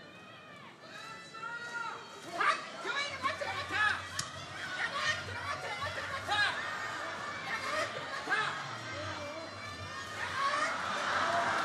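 A man calls out loudly in a high, chanting voice.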